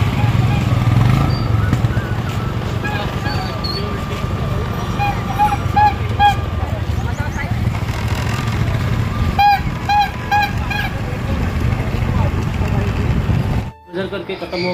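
Motorbike engines hum along a busy street outdoors.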